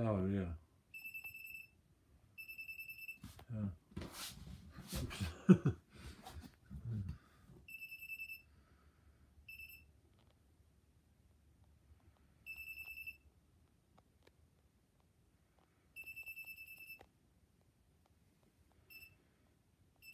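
An electronic voltage tester beeps in short, steady high bursts.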